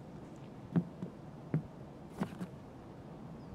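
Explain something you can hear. Footsteps thud slowly on a wooden floor.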